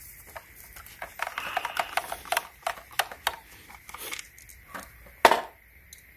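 A screwdriver scrapes and clicks against a screw.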